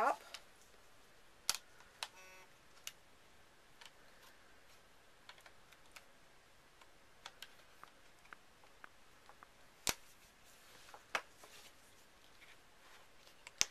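Plastic clicks and snaps as a phone case is fitted onto a phone.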